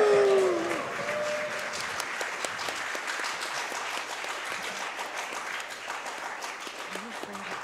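A small group of people chatter quietly in the background.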